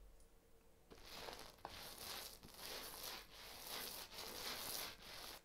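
A paint roller rolls over a wall with a soft swishing.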